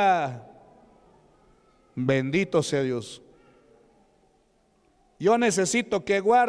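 A man preaches with fervour through a microphone in a large echoing hall.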